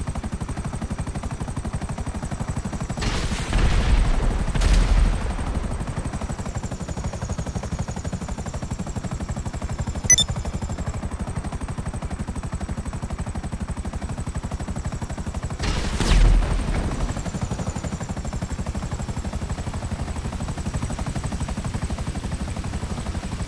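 A helicopter's rotor thuds steadily.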